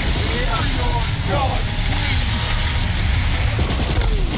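An energy weapon fires in rapid bursts.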